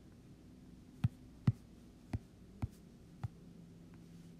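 Blocks are placed with short, dull knocks.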